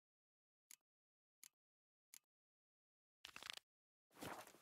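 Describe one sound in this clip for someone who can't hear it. Short clicks sound as a game menu is paged through.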